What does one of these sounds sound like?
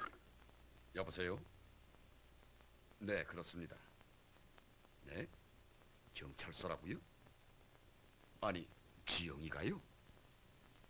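A man speaks on the telephone in short, calm phrases.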